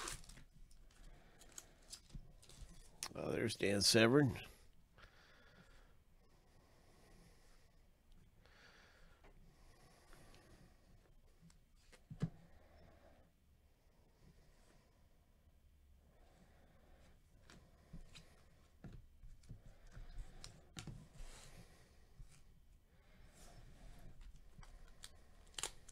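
Foil wrappers crinkle as card packs are handled.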